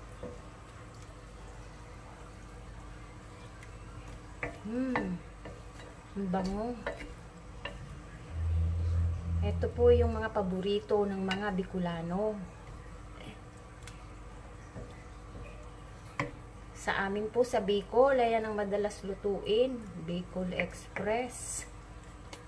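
A wooden spoon stirs and scrapes a thick sauce in a metal pan.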